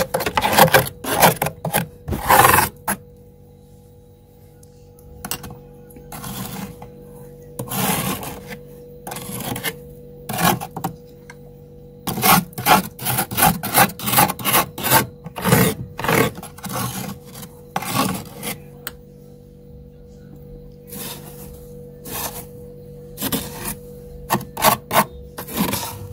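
Loose crushed ice crunches as a hand pushes through it.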